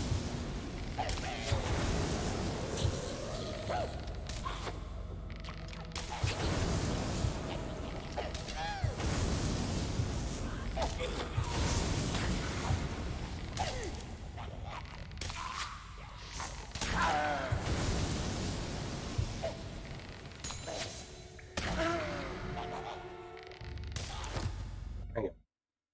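Weapon blows strike sharply again and again in a fight.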